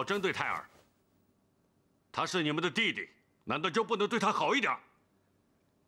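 A middle-aged man speaks calmly and closely.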